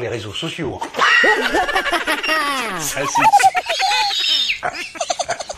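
A man laughs loudly and wildly.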